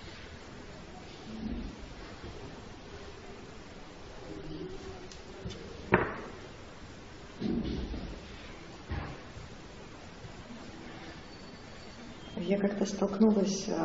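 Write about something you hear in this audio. Brushes and pencils scratch softly on paper.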